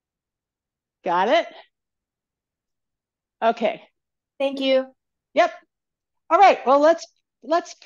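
An older woman speaks calmly into a close microphone, in short phrases with pauses.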